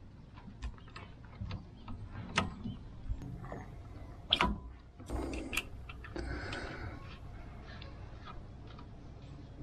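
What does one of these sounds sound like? Small metal parts click and tap under a hand.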